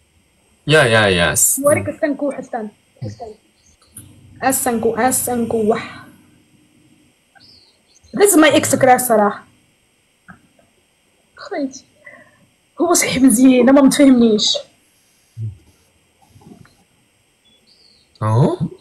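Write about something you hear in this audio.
A young woman talks with animation over an online call.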